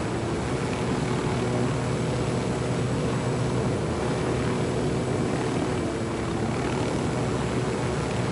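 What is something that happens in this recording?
A helicopter's rotor thuds steadily close by.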